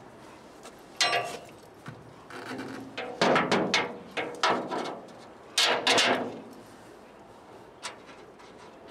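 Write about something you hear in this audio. Metal parts clank and scrape against a metal rack.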